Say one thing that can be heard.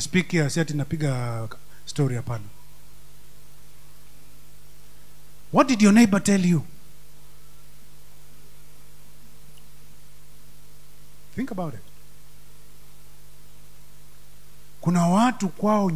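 A man speaks with emphasis through a microphone, in bursts with long pauses, in an echoing hall.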